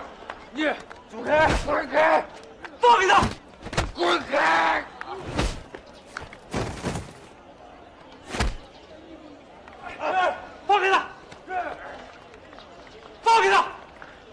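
A middle-aged man shouts angrily.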